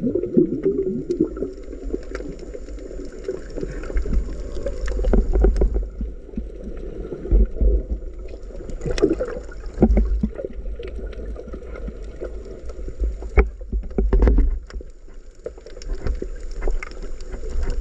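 Water surges and rumbles, low and muffled, all around underwater.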